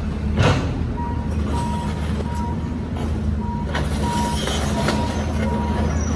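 An excavator's warning alarm beeps repeatedly.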